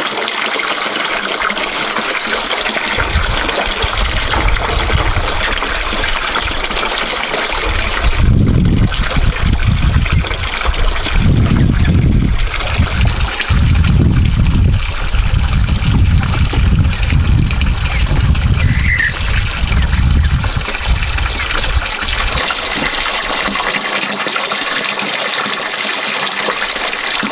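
Water trickles steadily from a pipe into a basin.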